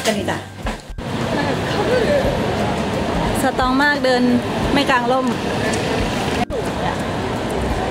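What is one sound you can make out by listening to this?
A crowd murmurs on a busy street outdoors.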